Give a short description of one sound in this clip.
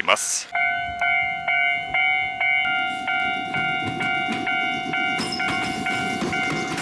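A railway crossing bell rings rapidly and steadily.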